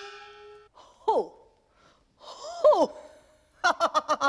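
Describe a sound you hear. A man speaks loudly and with animation.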